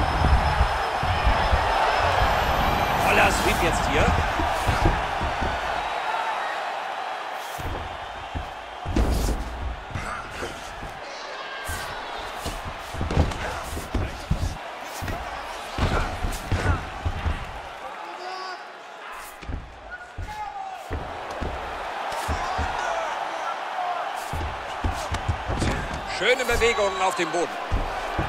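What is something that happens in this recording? Punches and elbows thud against a body in quick bursts.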